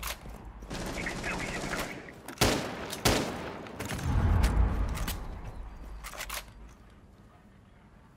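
A rifle magazine clicks out and snaps back in during a reload.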